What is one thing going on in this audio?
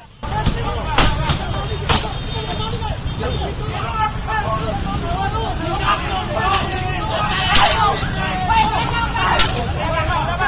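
Sticks bang hard against a car's body.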